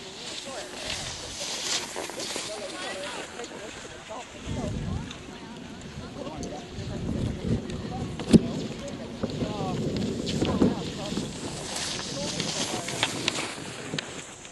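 Skis swish and scrape over packed snow close by.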